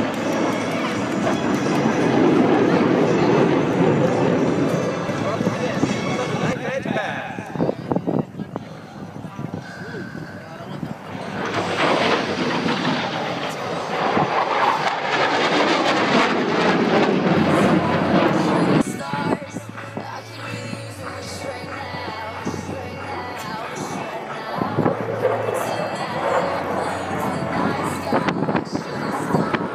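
Jet planes roar loudly overhead, swelling and fading as they pass.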